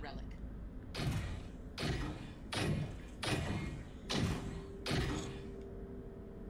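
A fist knocks repeatedly on a metal door.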